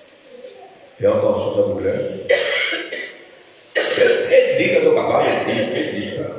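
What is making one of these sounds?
An elderly man speaks with emphasis into a microphone, heard through loudspeakers in an echoing hall.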